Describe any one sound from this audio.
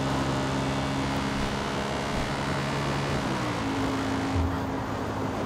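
A motorbike engine hums steadily as the bike rides along.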